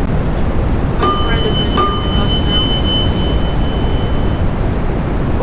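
An elevator chime rings twice.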